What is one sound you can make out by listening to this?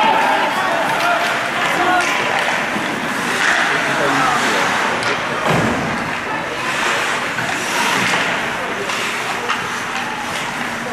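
A hockey stick clacks against a puck on ice.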